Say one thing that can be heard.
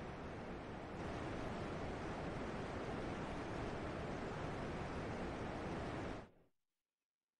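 A waterfall rushes and roars steadily.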